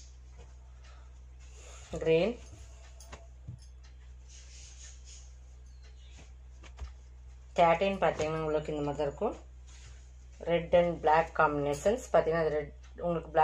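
Silk fabric rustles softly as hands fold and smooth it.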